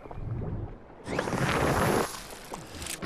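A magical whooshing shimmer sounds.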